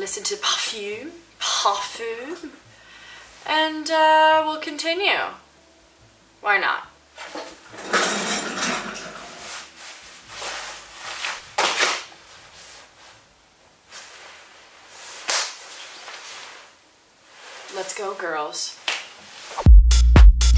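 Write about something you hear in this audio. A young woman talks expressively close to a microphone.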